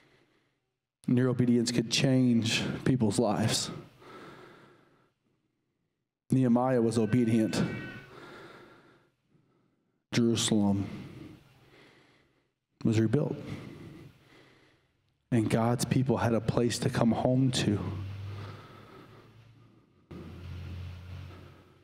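A man speaks with animation into a microphone, in bursts with pauses, in an echoing hall.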